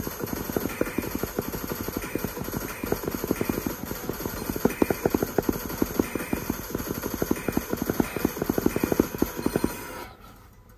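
Fingers tap rapidly on a tablet's glass.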